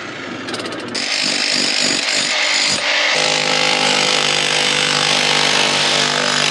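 A jackhammer pounds loudly into rock, echoing in a confined space.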